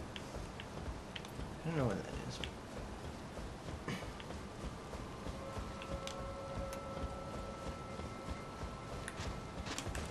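Footsteps patter quickly across stone.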